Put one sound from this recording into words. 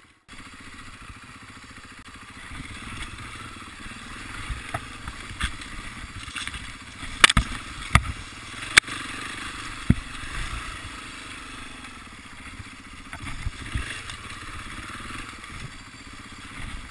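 A dirt bike engine hums steadily up close.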